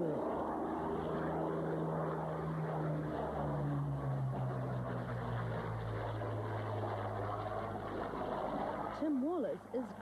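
A propeller plane's engine roars overhead as it passes low, its pitch dropping.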